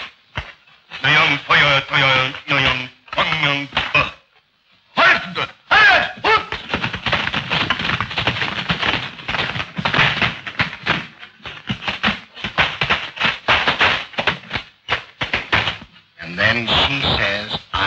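A man speaks loudly and with animation.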